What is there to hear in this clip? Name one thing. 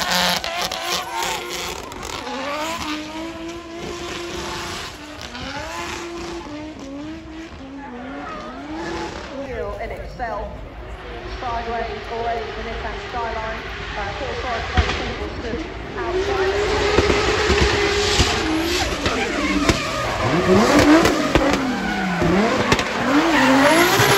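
A drift car's engine revs hard, rising and falling.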